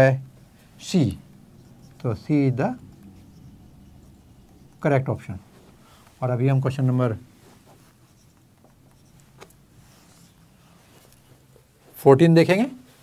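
An elderly man speaks calmly in short phrases, as if explaining.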